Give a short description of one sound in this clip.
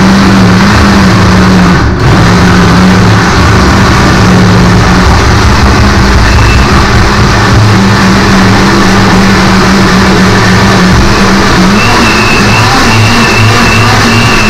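A blender whirs loudly and steadily, close by.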